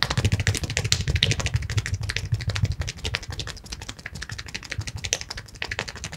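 Hands rapidly pat and rub a man's head up close.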